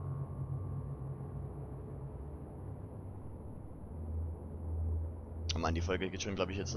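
A heavy machine hums with a deep, steady drone.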